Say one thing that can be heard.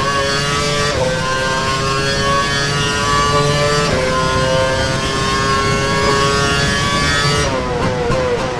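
A racing car engine screams at high revs, with its pitch jumping down at each gear change.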